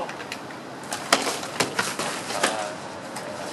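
Practice swords clack against each other.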